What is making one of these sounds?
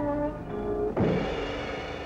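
A drummer beats a snare drum with sticks.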